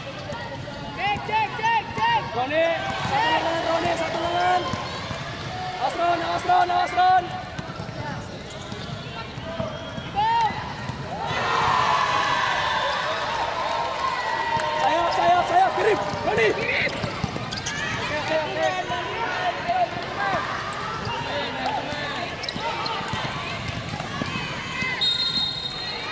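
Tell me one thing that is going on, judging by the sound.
Sneakers squeak sharply on a hard court floor in a large echoing hall.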